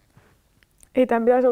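A young woman speaks in a tearful, wavering voice close by.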